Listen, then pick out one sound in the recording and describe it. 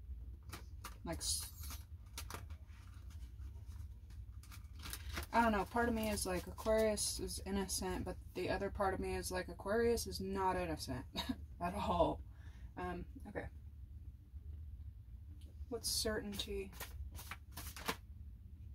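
Paper cards riffle and flick as they are shuffled by hand.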